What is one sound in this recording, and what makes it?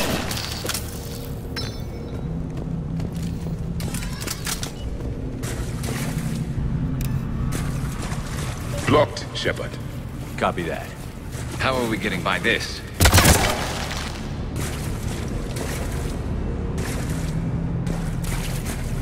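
Heavy footsteps tread on rocky ground.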